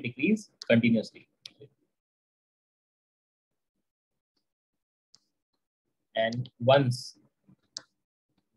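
A young man speaks calmly into a microphone, with pauses.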